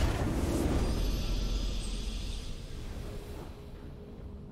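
A triumphant game victory sound swells and then fades away.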